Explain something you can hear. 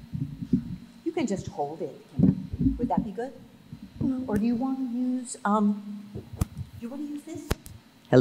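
A young girl speaks through a microphone in an echoing hall.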